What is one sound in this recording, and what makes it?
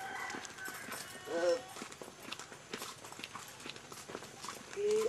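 Footsteps crunch on a dirt path among leaves.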